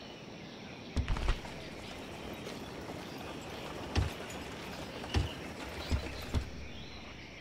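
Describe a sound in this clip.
Game menu buttons click sharply a few times.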